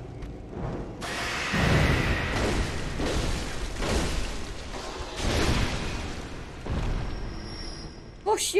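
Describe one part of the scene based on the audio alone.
Heavy blows and slashes clash in a fast fight.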